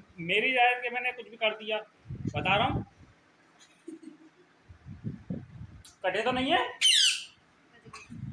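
A parrot chatters and squawks in a shrill voice.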